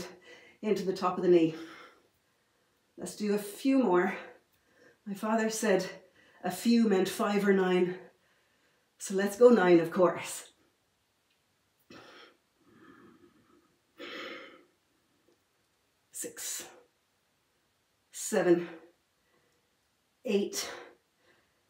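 A woman speaks calmly and clearly in short phrases, close by.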